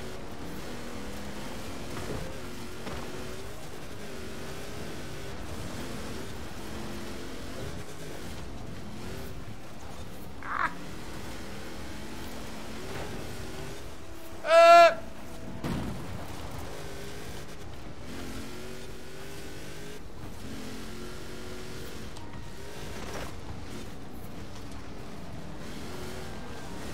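A car engine roars at high revs, shifting gears as it races.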